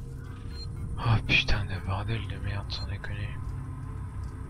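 A computer terminal beeps and chirps as it starts up.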